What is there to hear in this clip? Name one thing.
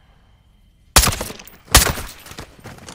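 A rifle fires two sharp shots.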